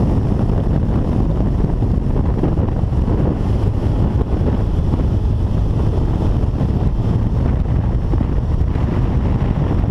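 A motorcycle engine roars steadily at speed.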